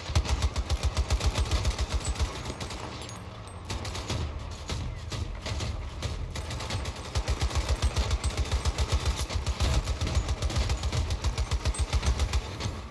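A machine gun fires in rapid, heavy bursts.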